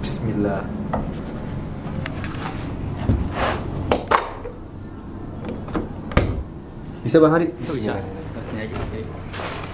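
A key rattles and clicks in a door lock.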